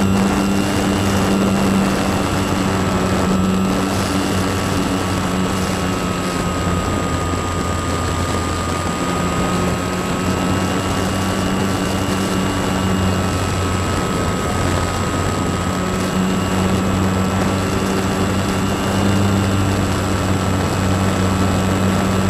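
An electric propeller whirs steadily, close by, with a high hum.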